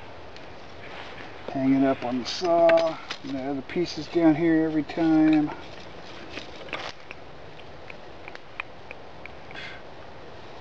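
Wooden sticks clatter softly under a man's hand.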